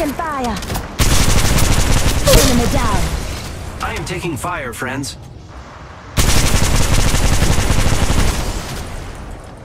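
Rapid gunfire blasts loudly in bursts.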